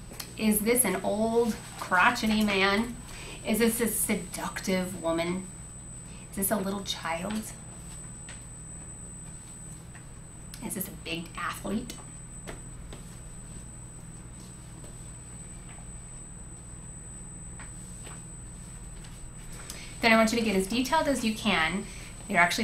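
A woman lectures calmly through a microphone, with long pauses.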